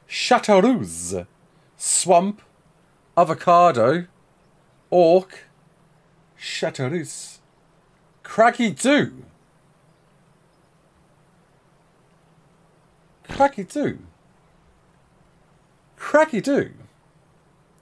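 A man talks with animation into a nearby microphone, in short bursts with pauses.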